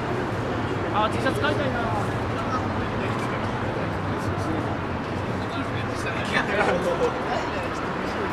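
Adult passers-by talk briefly nearby.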